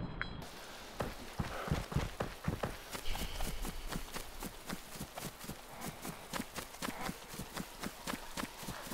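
Footsteps swish steadily through tall grass.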